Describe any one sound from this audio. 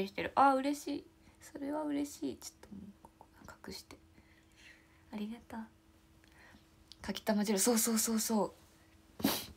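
A young woman speaks playfully and close to a microphone.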